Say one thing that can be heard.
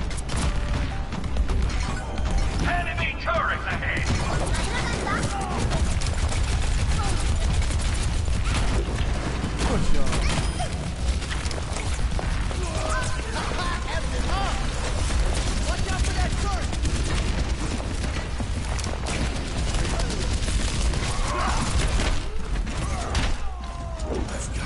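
Energy weapons fire in rapid, crackling bursts.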